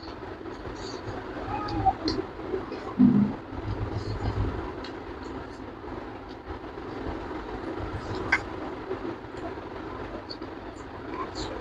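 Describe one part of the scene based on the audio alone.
A young man chews food noisily and smacks his lips close up.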